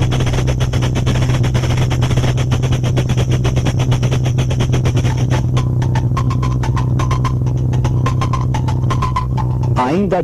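A street band beats drums in a fast, steady rhythm.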